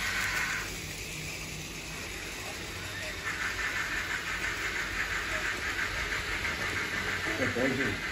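A small model train rattles and hums along its tracks.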